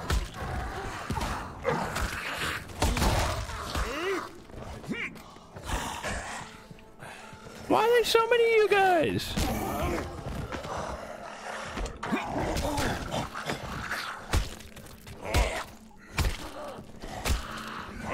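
Zombies groan and snarl.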